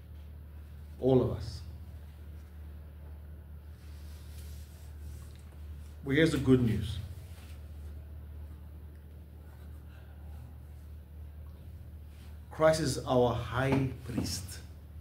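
A man speaks calmly close by in short bursts.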